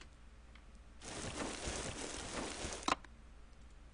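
Dry grass rustles as someone crawls through it.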